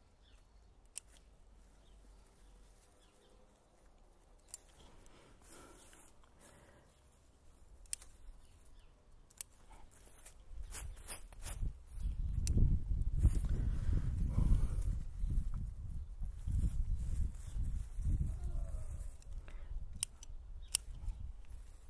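Small scissors snip sharply at leaves.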